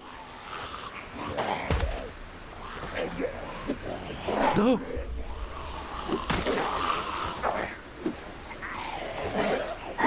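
Blows land with dull thuds during a scuffle.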